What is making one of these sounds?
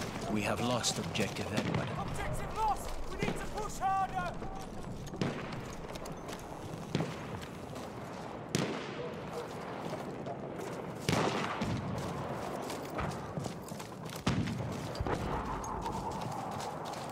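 Footsteps thud quickly on dirt as a soldier runs.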